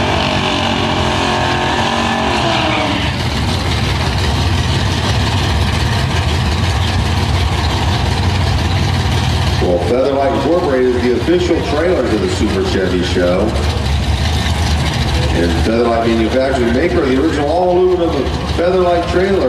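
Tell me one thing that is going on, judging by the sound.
A powerful car engine roars loudly and steadily.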